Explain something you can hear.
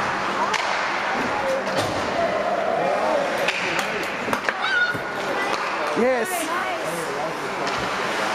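A crowd of spectators chatters and cheers in a large echoing rink.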